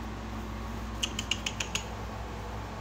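A cat's paws tap on wooden stairs.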